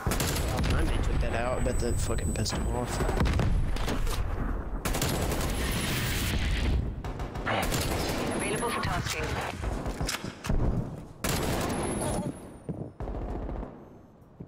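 An automatic rifle fires in bursts in a video game.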